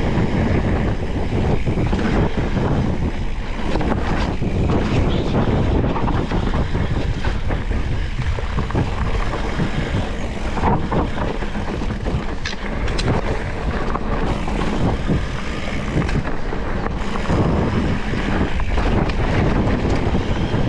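Bike tyres roll and crunch over a dirt trail.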